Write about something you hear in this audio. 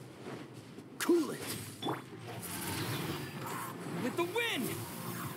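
Magic blasts and sword hits crack and whoosh in a game fight.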